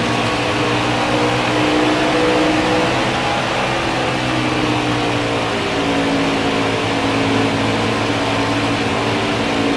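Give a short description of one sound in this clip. A racing truck engine roars steadily at high speed.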